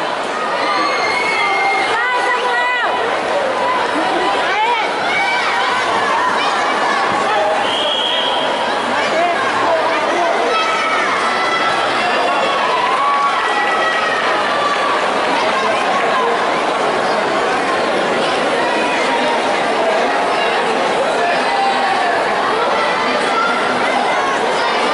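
Children's voices shout and cheer from the crowd.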